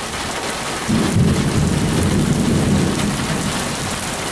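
Thunder rumbles low and fades.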